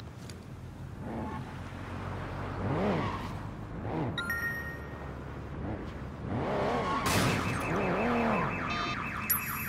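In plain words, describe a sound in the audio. A car engine revs up and down loudly.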